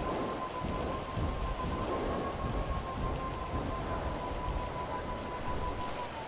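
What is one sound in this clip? A motorbike engine rumbles steadily as it rides along.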